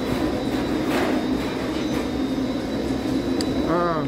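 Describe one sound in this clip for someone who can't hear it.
A shopping cart rattles as it rolls over a hard floor.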